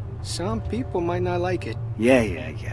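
A middle-aged man speaks in a gruff, warning tone nearby.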